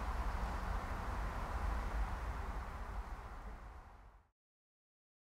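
Wind buffets the microphone outdoors and fades away.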